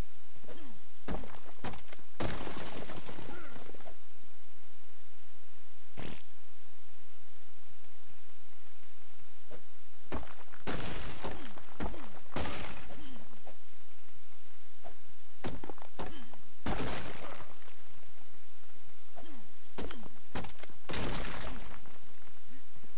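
A hatchet strikes rock with heavy crunching blows.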